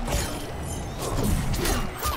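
A magical energy blast whooshes and crackles.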